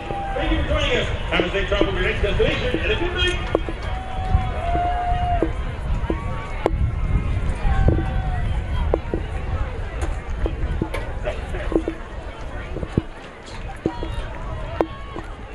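A crowd of players cheers and shouts outdoors on a field.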